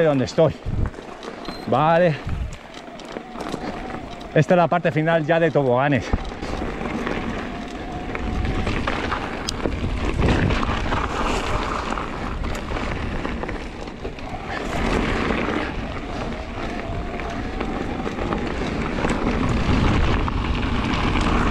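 Bicycle tyres crunch and rattle over a gravel trail.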